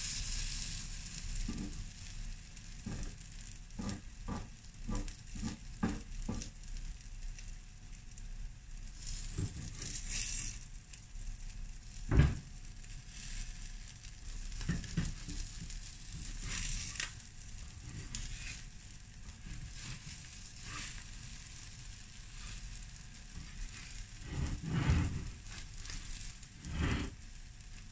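Batter sizzles softly on a hot griddle.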